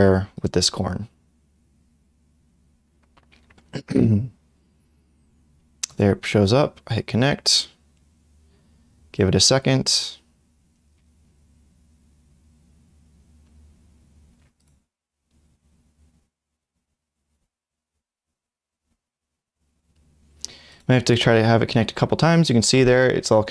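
A young man speaks calmly into a close microphone, in short bursts with pauses.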